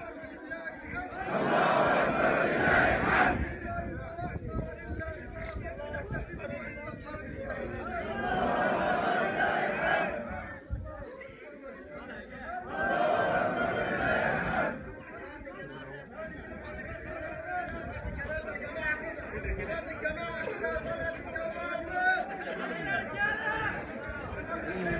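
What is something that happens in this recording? A large crowd of men murmurs and talks outdoors.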